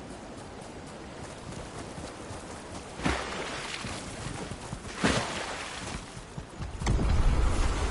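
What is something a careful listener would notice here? Water splashes with each stride as a figure wades through shallows.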